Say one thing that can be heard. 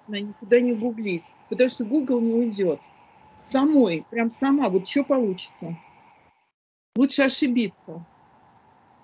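An elderly woman speaks with animation over an online call.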